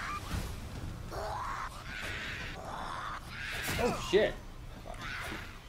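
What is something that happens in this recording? A man exclaims with animation close to a microphone.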